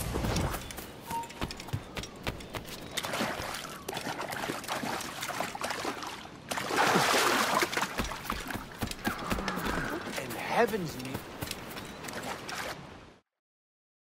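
Footsteps run over wood, rock and grass.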